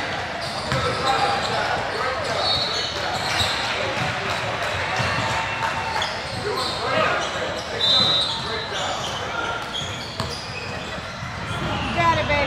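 A crowd of spectators murmurs and calls out in the echoing hall.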